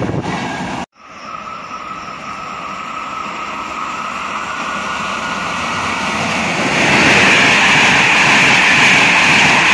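A second train approaches and thunders past at speed.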